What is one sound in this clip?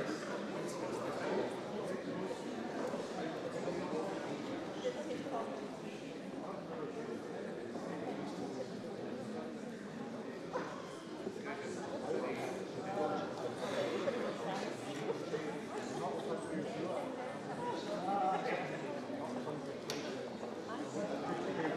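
Many men and women murmur and chat at once in a large echoing hall.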